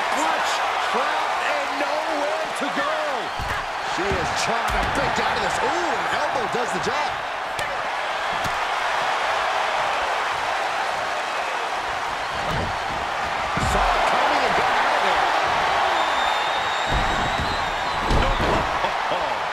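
Heavy thuds land as wrestlers slam onto the mat and floor.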